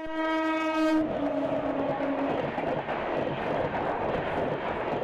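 A passing train roars loudly alongside.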